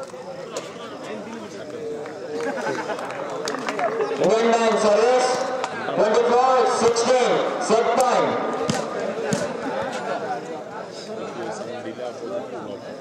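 Young men shout to each other nearby.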